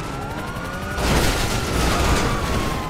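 A car crashes with a loud metal bang.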